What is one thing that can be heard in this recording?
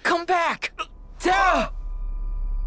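A young man calls out with emotion.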